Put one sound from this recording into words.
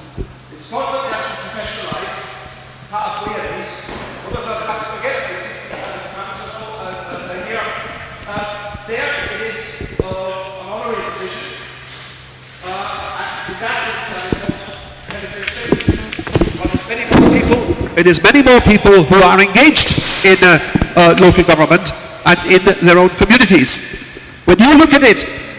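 An elderly man speaks with animation through a microphone in an echoing hall.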